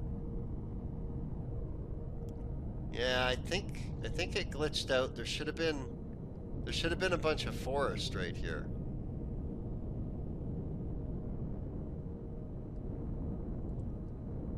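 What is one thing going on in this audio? A vehicle engine rumbles low and steady.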